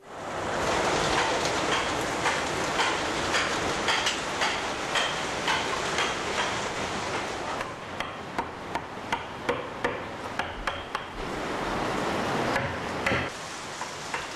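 A mallet taps a chisel into wood in quick, steady blows.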